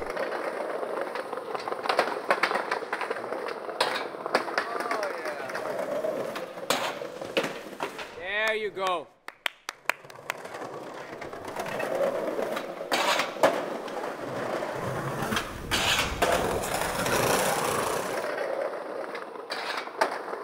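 Skateboard wheels roll and grind over concrete.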